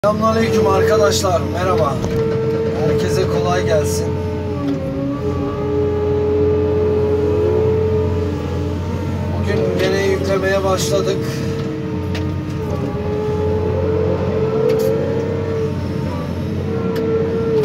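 Hydraulics whine, rising and falling in pitch as an excavator arm moves.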